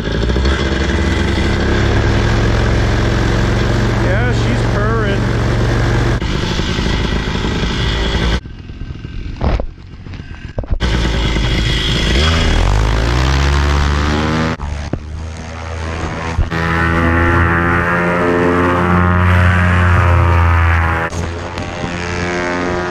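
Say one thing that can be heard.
A small motor engine drones, then revs up and roars loudly.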